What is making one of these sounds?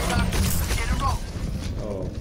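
Gunfire and explosions boom from a video game battle.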